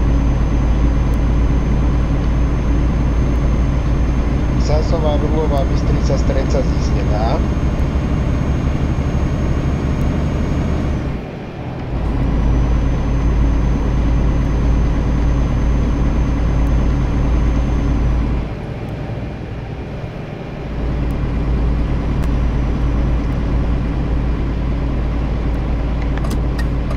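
A truck engine drones steadily, dropping briefly twice as the gears change.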